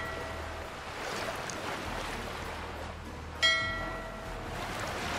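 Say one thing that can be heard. Waves wash softly and steadily.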